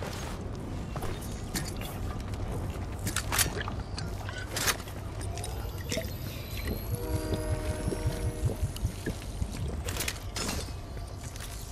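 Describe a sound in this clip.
Footsteps run on stone paving.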